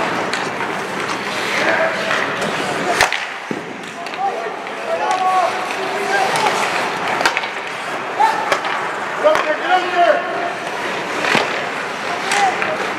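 Skates scrape and hiss across the ice in an echoing arena.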